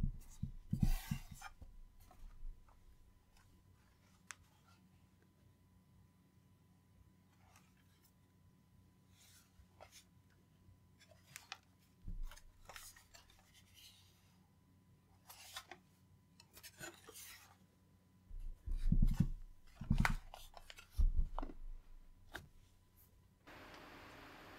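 Hands handle a metal case with soft knocks and scrapes.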